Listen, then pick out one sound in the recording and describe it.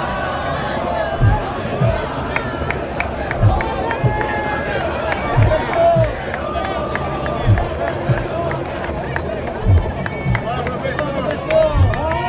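A large crowd cheers and shouts outdoors.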